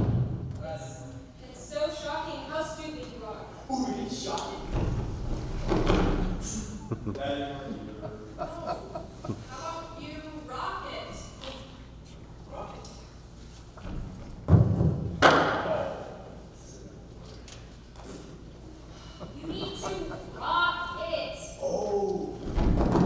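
Young people talk with animation on a stage, heard through a microphone in a large hall.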